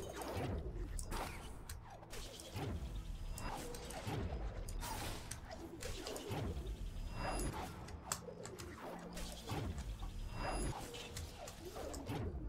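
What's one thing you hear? Magical energy bursts whoosh and crackle repeatedly.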